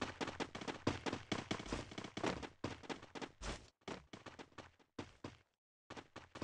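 Quick footsteps thud on hard ground as a character runs.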